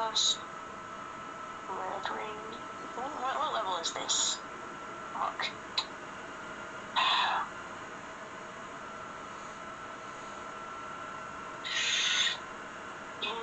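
Electronic game sound effects whoosh in short bursts.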